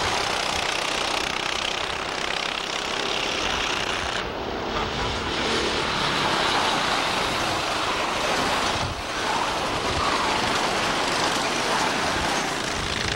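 Kart engines buzz loudly as karts race past.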